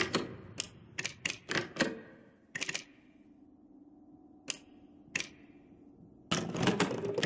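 Short clicks tick as menu options are selected.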